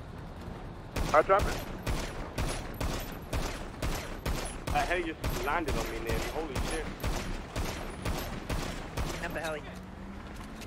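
A pistol fires shots in rapid succession.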